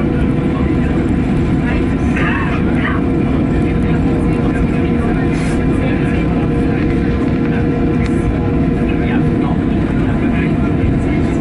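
A man speaks briefly through a headset microphone.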